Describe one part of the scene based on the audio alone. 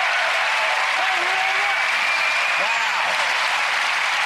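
A man cheers and whoops loudly.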